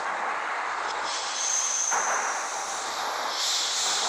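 A passing train rushes by close alongside.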